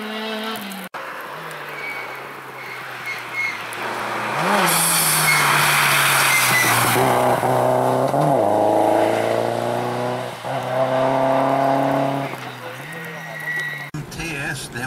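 Another rally car engine roars and revs as it approaches and passes close by.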